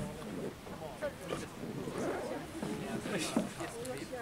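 People chatter in a group.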